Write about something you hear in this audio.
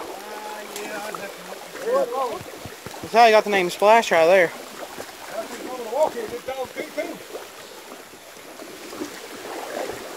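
Water splashes and sloshes around an animal.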